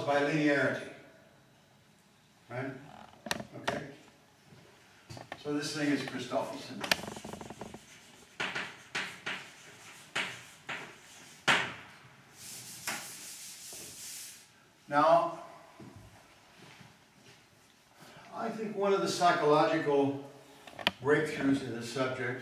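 An elderly man lectures calmly in a large echoing room.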